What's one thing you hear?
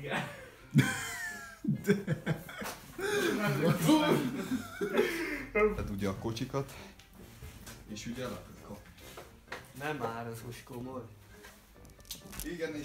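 Young men talk and laugh loudly nearby in a small echoing room.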